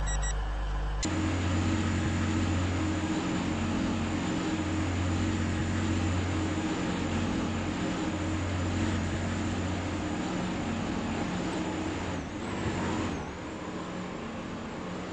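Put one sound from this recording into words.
An electric train hums steadily at a platform, then pulls away.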